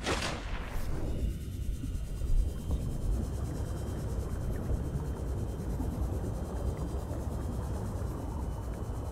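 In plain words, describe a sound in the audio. A submarine hums steadily as it glides underwater.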